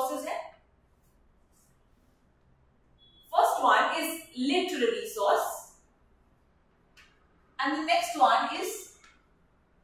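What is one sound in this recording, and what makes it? A young woman speaks calmly into a nearby microphone, in short phrases with pauses.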